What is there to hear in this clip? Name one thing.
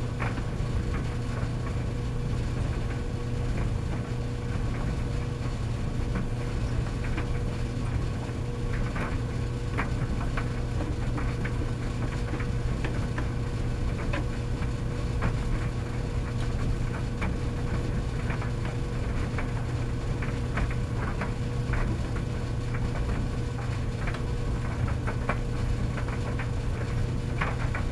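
Commercial tumble dryers hum as they run.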